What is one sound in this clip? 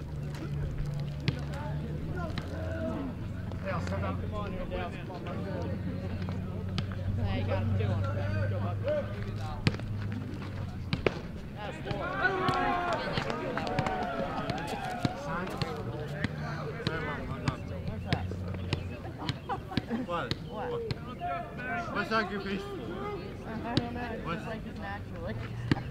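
Young men chatter and call out nearby outdoors.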